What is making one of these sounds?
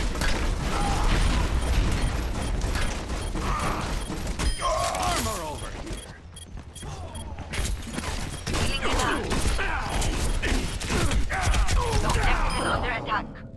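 Explosions thud heavily.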